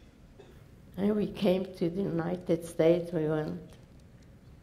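An elderly woman speaks calmly and slowly through a microphone.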